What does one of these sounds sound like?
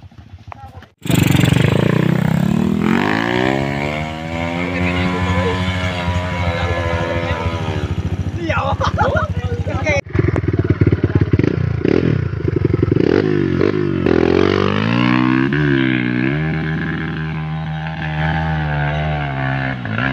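A dirt bike engine revs loudly and climbs a hill.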